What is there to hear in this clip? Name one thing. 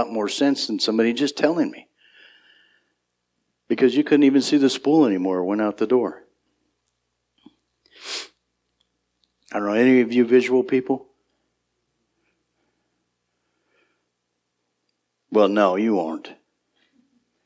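A middle-aged man preaches with animation through a microphone, pausing between phrases.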